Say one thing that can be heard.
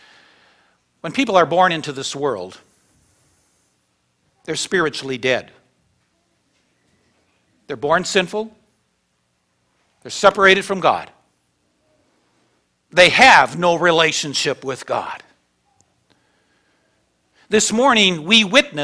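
An elderly man preaches with animation through a microphone, in short bursts with pauses.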